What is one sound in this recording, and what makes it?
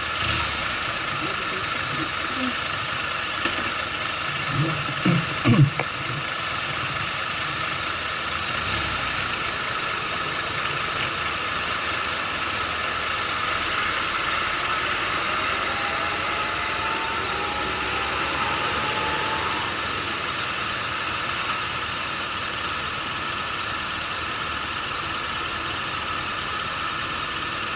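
City traffic hums in the background.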